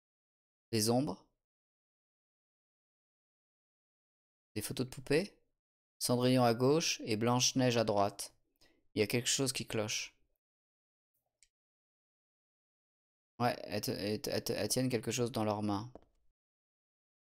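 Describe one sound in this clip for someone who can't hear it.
A man talks close to a microphone, in short bursts with pauses.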